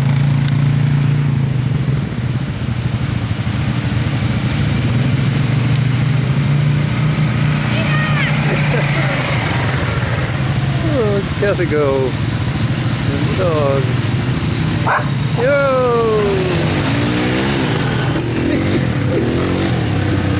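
Quad bike engines rumble steadily nearby.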